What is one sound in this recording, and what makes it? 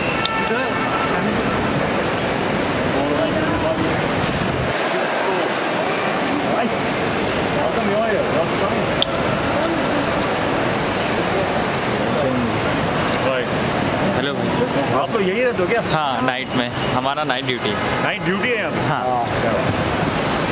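A busy crowd murmurs and chatters in a large echoing hall.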